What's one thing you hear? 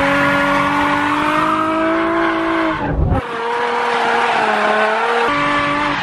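Tyres squeal on tarmac as a car slides.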